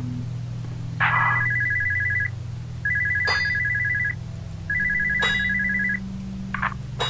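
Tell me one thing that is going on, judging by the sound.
A telephone rings in short bursts.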